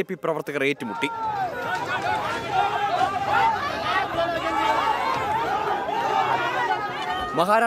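A crowd of men shout and argue excitedly close by.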